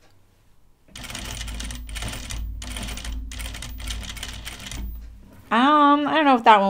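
A sewing machine whirs and stitches steadily.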